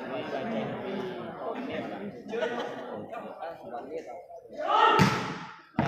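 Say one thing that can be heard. A volleyball is struck with a dull thump.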